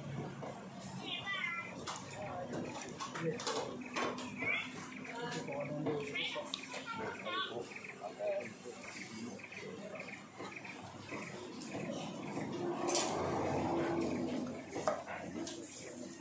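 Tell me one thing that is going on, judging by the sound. A knife chops meat on a wooden block with repeated knocks.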